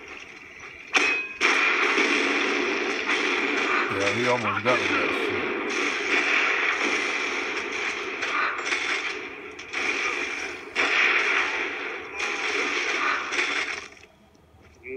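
Rifle shots fire in rapid, loud bursts.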